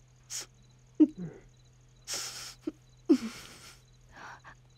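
A middle-aged woman sobs and breathes heavily.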